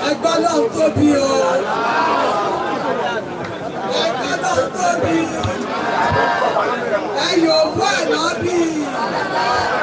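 A crowd of men and women chatters loudly nearby, outdoors.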